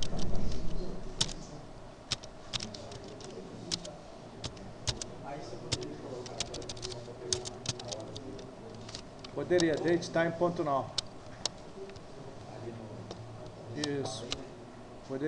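Keyboard keys click in quick, uneven bursts of typing.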